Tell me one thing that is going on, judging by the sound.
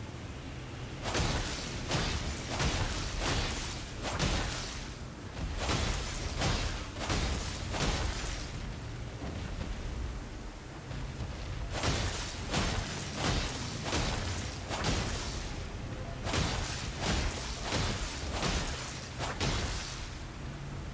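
Blades slash and strike flesh again and again in quick bursts.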